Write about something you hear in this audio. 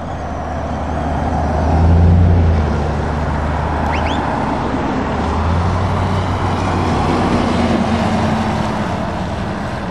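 A lorry engine rumbles loudly as it passes close by.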